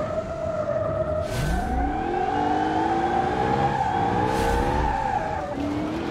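Tyres skid and scrub on pavement.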